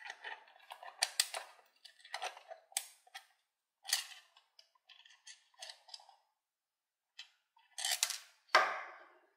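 A screwdriver scrapes and clicks against a plastic toy.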